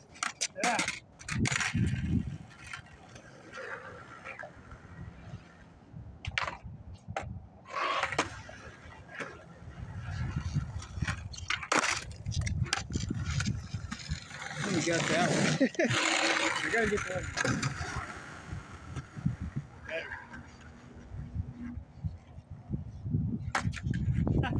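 Skateboard wheels roll over rough pavement.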